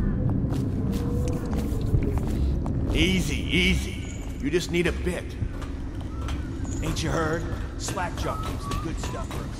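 A man speaks in a gruff voice close by.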